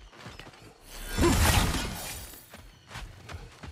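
Thunder rumbles and cracks loudly.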